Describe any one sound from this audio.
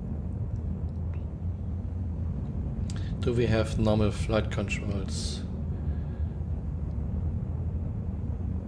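A spacecraft engine rumbles low and steady.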